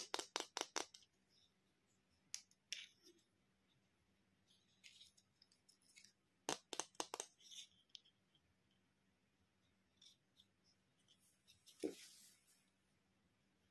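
Small plastic toy parts click and tap together.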